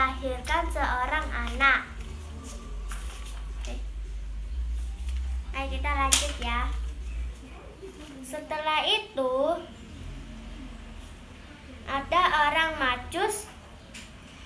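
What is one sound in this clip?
A young girl speaks clearly close to a microphone.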